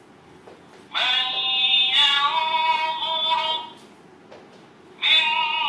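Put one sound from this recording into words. A recitation plays through a small loudspeaker.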